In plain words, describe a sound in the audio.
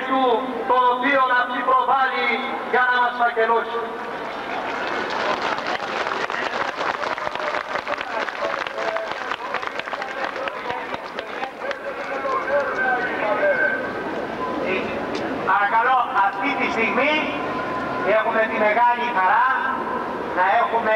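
A man speaks loudly through a loudspeaker outdoors, with an echo.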